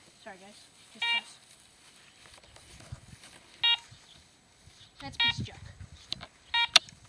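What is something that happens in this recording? A metal detector gives short, high electronic beeps every few seconds.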